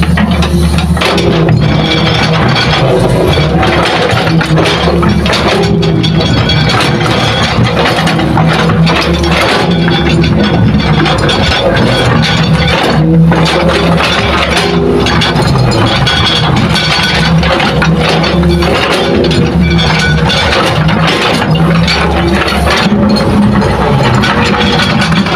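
A diesel excavator engine rumbles and roars steadily close by.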